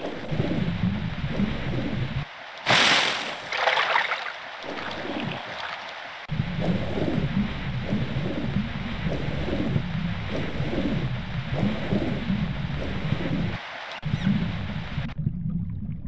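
Bubbles gurgle and rumble underwater.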